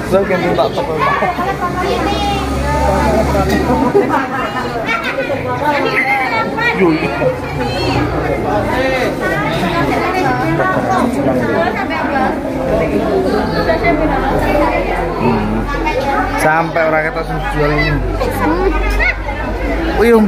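Several women chatter close by, overlapping one another.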